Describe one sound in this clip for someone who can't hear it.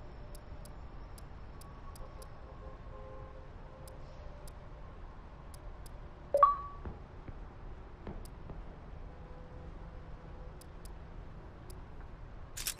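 Soft menu clicks tick as selections change.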